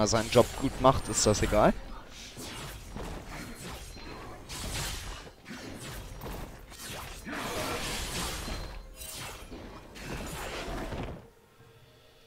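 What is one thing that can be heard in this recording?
Video game combat effects crash and whoosh in quick bursts.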